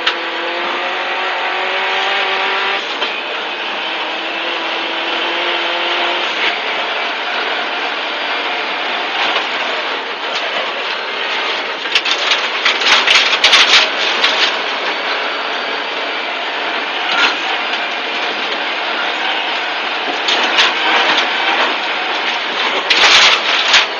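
A rally car engine roars and revs hard.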